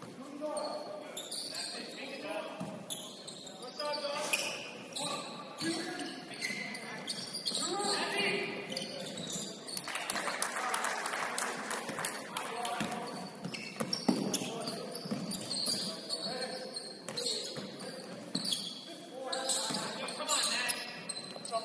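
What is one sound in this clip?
Players shout and call to each other across the gym.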